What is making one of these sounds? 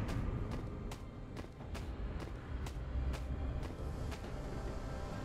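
A video game character's attacks land with quick, sharp hits.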